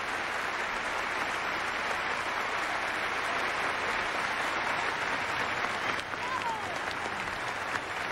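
A large audience applauds loudly in a big echoing hall.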